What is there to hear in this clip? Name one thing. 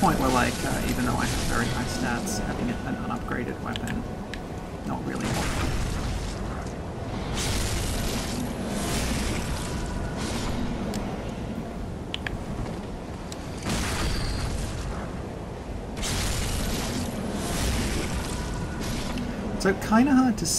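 Game weapons clash and slash in bursts.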